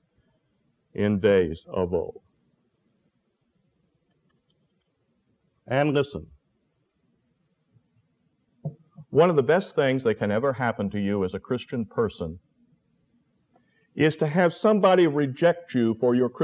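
An elderly man speaks calmly in pauses, heard through a microphone.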